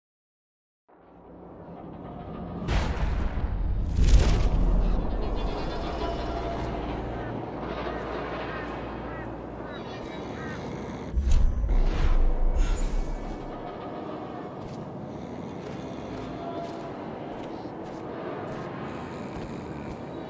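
Footsteps tread on hard ground.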